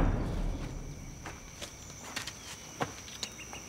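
Footsteps crunch along a dirt path outdoors.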